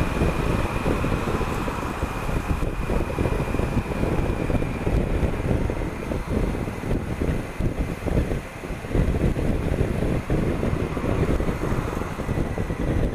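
Wind buffets a helmet microphone in a strong, rumbling roar.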